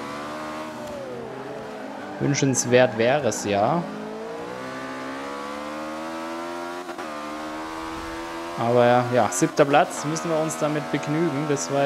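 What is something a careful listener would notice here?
A racing car engine hums steadily, its pitch rising and dropping with gear changes.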